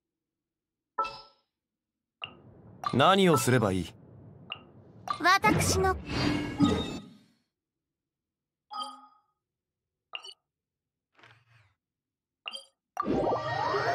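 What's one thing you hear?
Short game menu clicks and chimes sound.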